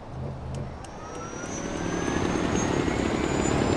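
A pulley whirs along a zipline cable, rising in pitch.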